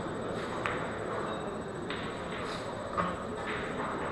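Pool balls click against each other and roll across the table.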